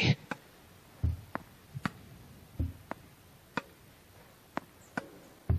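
A tennis ball is struck and bounces with sharp pops.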